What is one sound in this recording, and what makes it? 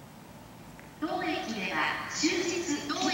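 Train brakes squeal loudly and shrilly.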